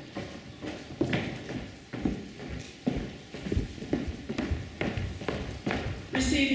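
A woman speaks calmly into a microphone over a loudspeaker in a large hall.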